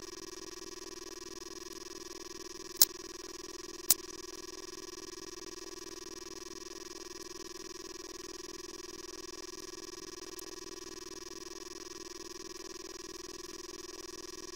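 An arcade game plays a steady, droning electronic tone.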